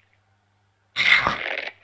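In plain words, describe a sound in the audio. A metal lever clunks as it is pulled.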